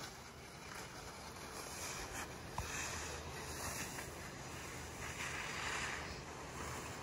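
Skis scrape over packed snow at a distance.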